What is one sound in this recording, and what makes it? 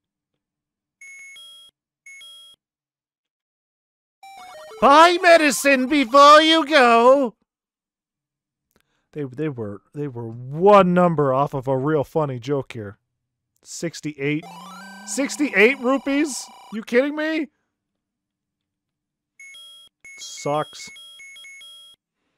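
Short electronic game beeps chirp.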